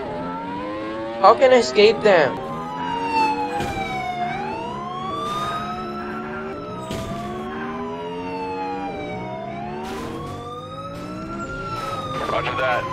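A car engine drones, rising and falling in pitch.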